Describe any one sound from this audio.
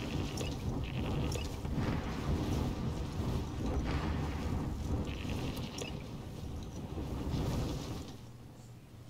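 Wind rushes loudly past during a fast parachute descent.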